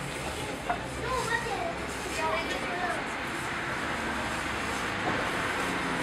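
A plastic bag crinkles as it is handed over.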